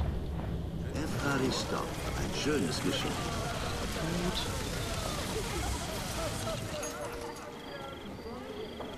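A crowd murmurs and chatters nearby.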